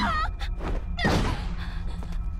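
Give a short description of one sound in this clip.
A body thuds onto a hard floor.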